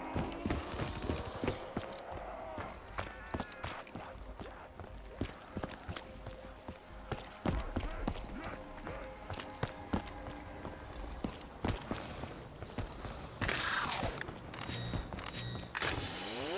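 Footsteps patter steadily on hard ground.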